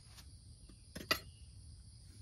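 A button clicks on a small power unit.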